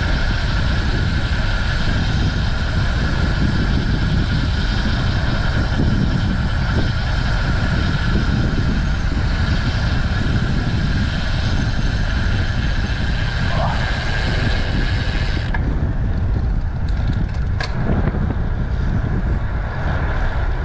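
Wind rushes loudly past a bicycle rider.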